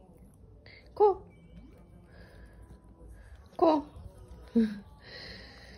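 A small dog yips in short, sharp bursts.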